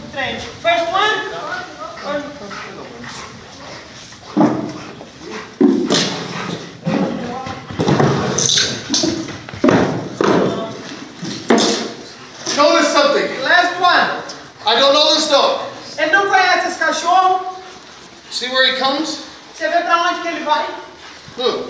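A man speaks loudly and firmly close by, giving commands.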